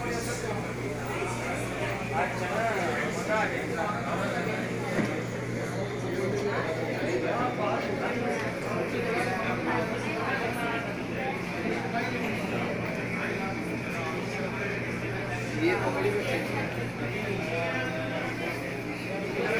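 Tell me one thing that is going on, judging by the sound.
Cutlery and plates clink on tables.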